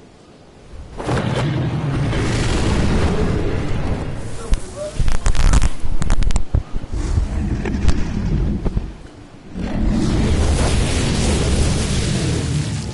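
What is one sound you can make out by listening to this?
Wind rushes loudly.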